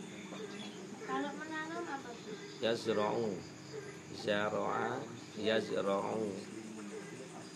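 Young women speak nearby.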